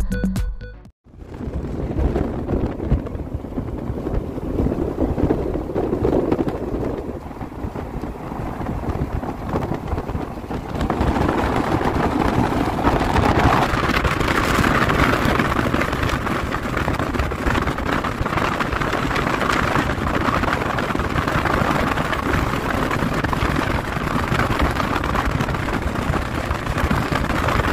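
Wind rushes loudly past a moving open vehicle.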